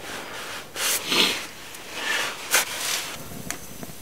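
A man rustles in a sleeping bag.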